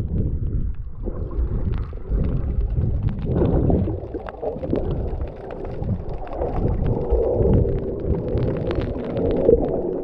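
Small clicks and crackles patter underwater.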